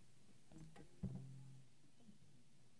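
A guitar chord is strummed once and rings briefly in a large hall.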